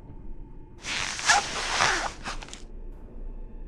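A stiff mask scrapes and rustles as it is pulled off.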